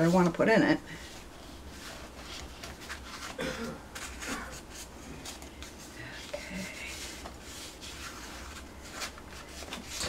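A wooden ruler presses and rubs along paper.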